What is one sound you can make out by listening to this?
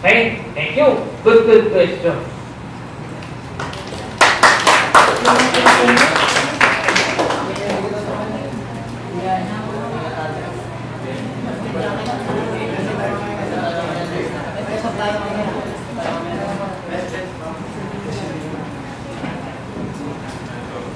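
A man speaks calmly into a microphone over loudspeakers in an echoing hall.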